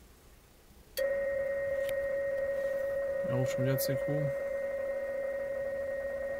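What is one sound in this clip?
A small laptop speaker plays a steady, buzzing radio data signal.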